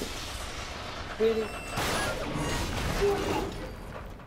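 Debris crashes and rumbles as a structure breaks apart.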